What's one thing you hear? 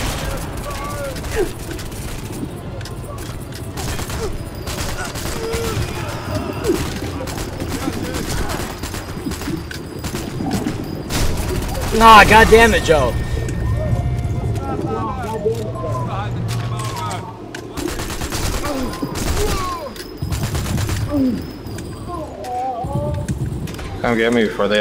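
Rifle shots crack sharply, again and again.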